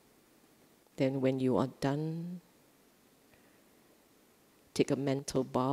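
A middle-aged woman speaks calmly into a microphone, with pauses.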